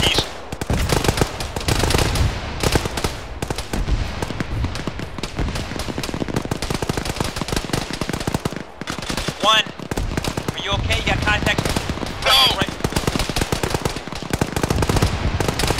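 Gunfire rattles in rapid bursts close by.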